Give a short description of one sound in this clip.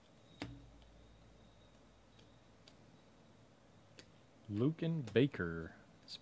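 Trading cards softly rustle and click as they are flipped through by hand.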